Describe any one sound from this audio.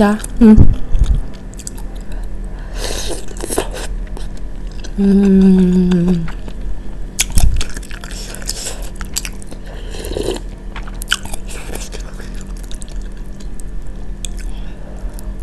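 A young woman chews food wetly and smacks her lips close to a microphone.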